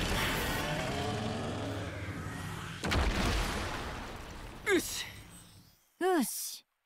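A heavy creature crashes to the ground with a deep thud and rumble.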